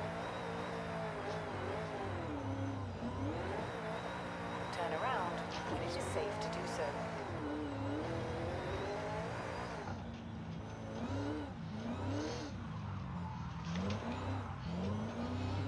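A car engine roars, revving up and dropping in pitch with each gear change.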